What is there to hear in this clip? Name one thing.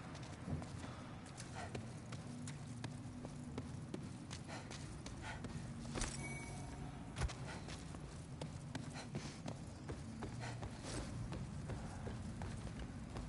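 Footsteps thud on stone and wooden stairs.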